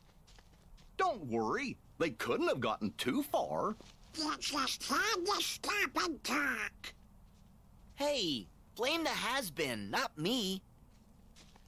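A woman speaks with a sly, scornful tone.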